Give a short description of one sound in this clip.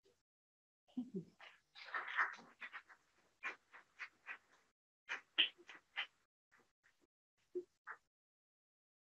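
Footsteps tap across a hard floor.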